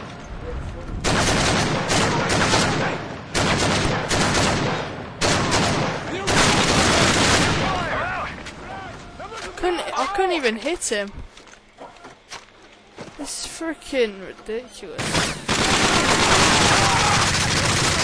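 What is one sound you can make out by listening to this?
Automatic rifles fire.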